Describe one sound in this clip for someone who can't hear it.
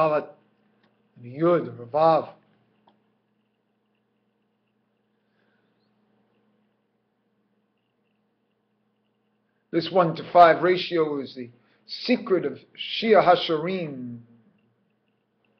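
A middle-aged man speaks calmly and slowly, close to a microphone, with long pauses.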